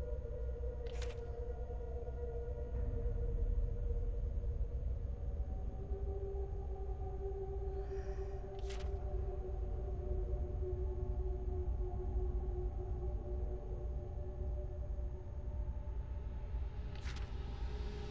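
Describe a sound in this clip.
A paper page turns with a short rustle.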